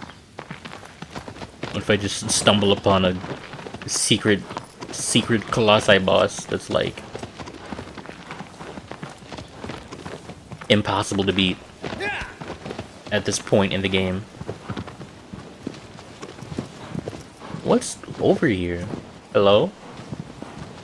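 A horse gallops with steady hoofbeats on dirt and grass.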